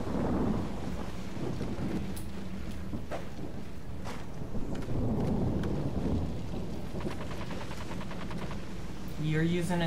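A young man talks calmly into a close microphone.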